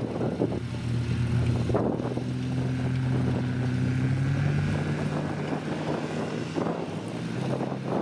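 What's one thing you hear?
Tyres bump over rough grass.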